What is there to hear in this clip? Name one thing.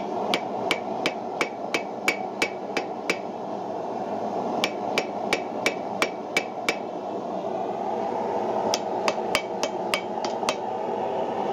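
A hammer rings in quick blows on an anvil.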